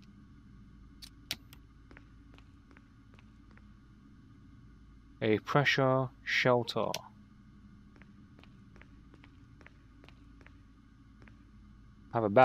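Footsteps tap on a hard metal floor.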